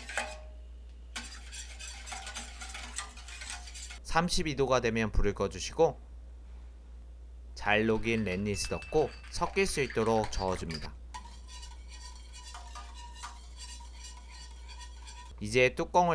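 A whisk stirs liquid in a metal pot.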